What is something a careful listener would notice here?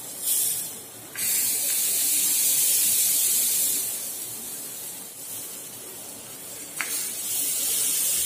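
Batter sizzles in a hot pan.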